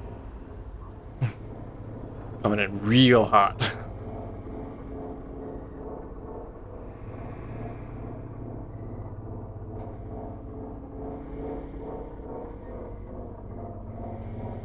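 A truck engine rumbles steadily at idle.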